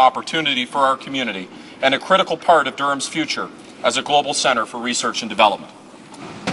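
A young man speaks steadily into a microphone.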